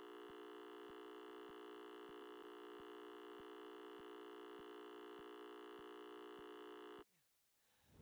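A steady electronic test tone hums.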